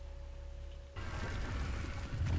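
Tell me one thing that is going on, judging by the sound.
Rubble crumbles and falls to the ground.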